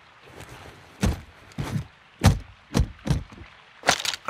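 Metal latches snap open on a case with sharp clicks.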